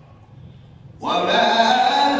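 A man chants melodically through a microphone in a reverberant space.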